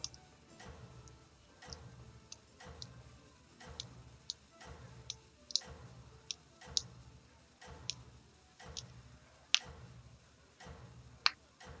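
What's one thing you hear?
A game's countdown ticks with a soft low pulse about once a second.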